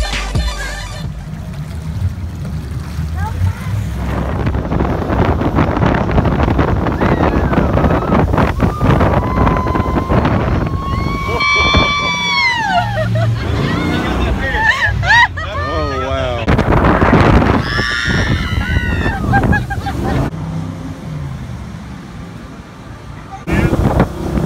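A speedboat engine roars loudly.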